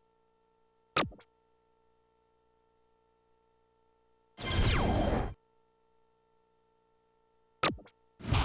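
A dart strikes an electronic dartboard with a sharp thud.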